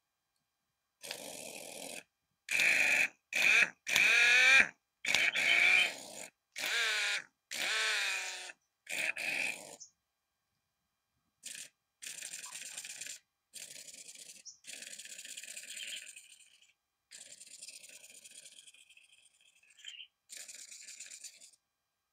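A cordless impact driver whirs in short bursts.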